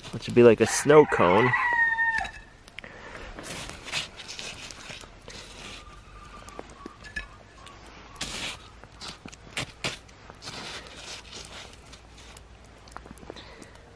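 A wooden spoon scrapes and crunches through snow.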